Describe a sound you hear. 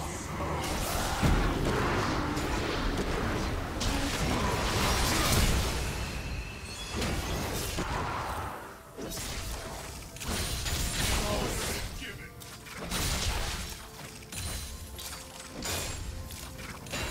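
Spell and combat effects crackle and boom in a fast-paced fight.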